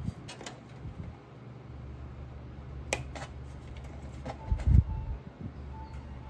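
A cable connector clicks into place.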